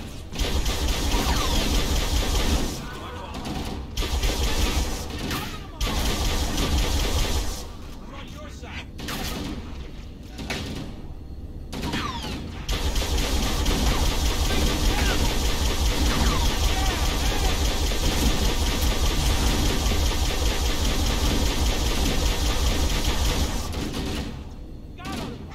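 A hovering vehicle's engine hums with a deep rumble.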